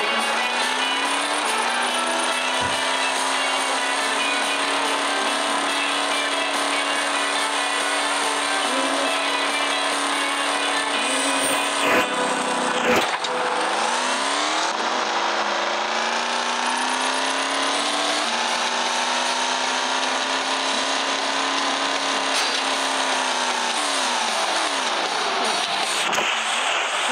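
A truck engine drones steadily and rises and falls in pitch as it speeds up and slows down.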